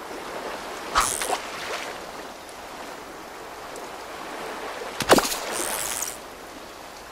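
A fishing lure splashes into water.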